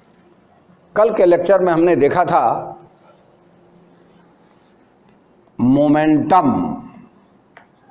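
An elderly man speaks loudly nearby.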